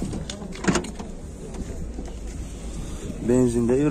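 A car trunk lid clicks open.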